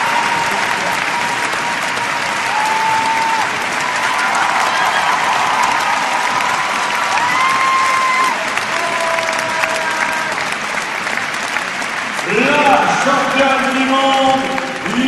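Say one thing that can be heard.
A large crowd cheers and applauds in a big echoing arena.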